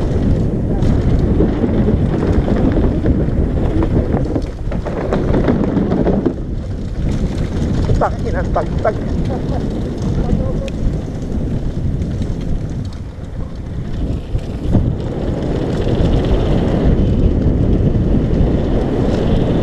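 Wind rushes loudly past a rider's helmet.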